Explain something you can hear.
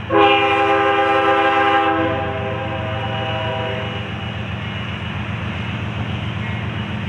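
A diesel locomotive engine rumbles steadily as it approaches.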